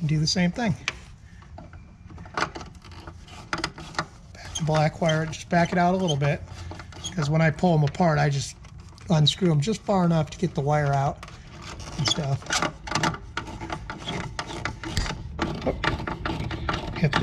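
A screwdriver clicks and scrapes against a small screw.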